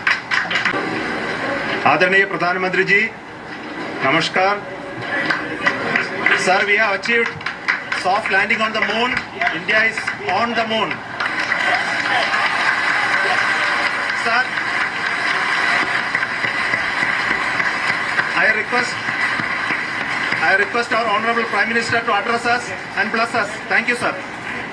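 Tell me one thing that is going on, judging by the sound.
A man speaks into a microphone, heard through a television loudspeaker.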